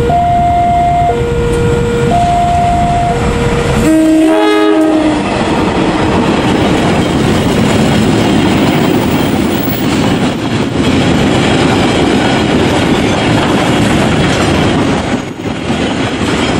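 A long freight train rumbles and clatters past close by on the rails.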